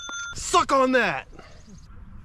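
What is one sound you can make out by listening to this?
A man talks with animation outdoors.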